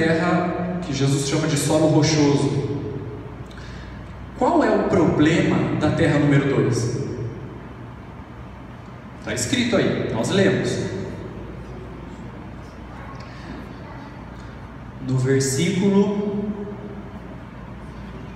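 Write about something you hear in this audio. A man speaks with feeling through a microphone and loudspeakers, in a reverberant hall.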